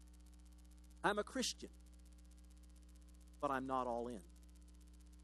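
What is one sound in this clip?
A middle-aged man speaks calmly into a microphone in a large room, in short bursts.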